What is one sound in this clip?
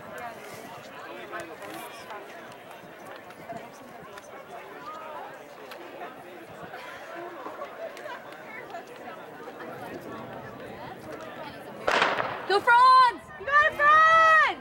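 A crowd of people chatter at a distance outdoors.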